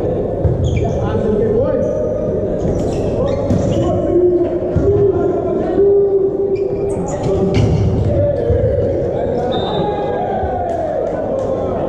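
A volleyball is struck by hands in a large echoing hall.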